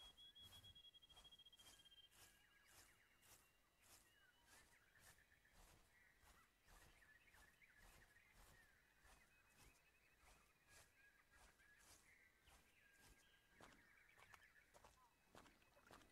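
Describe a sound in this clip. Footsteps tread steadily over grass.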